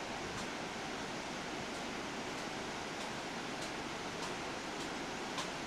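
Waterfalls roar steadily over rocks.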